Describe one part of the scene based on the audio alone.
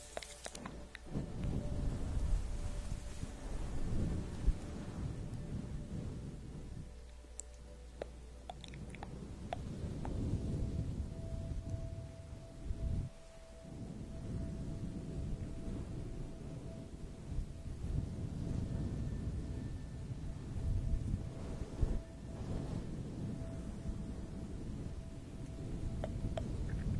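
Fingers rub and scratch a fuzzy microphone cover up close, with a soft rustling.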